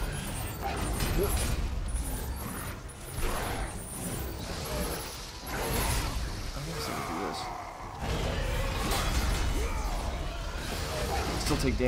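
Monsters grunt and roar.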